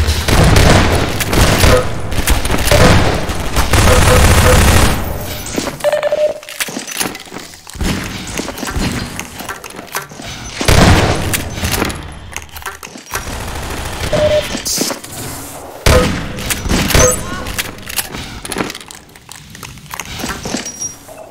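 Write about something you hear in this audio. A shotgun is pumped and reloaded with metallic clicks.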